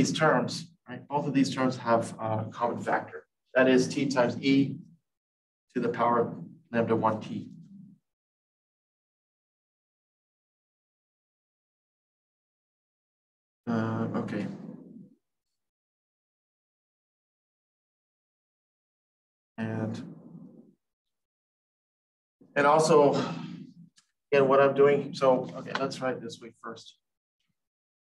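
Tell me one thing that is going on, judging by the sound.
A man lectures calmly in pauses, close to a microphone.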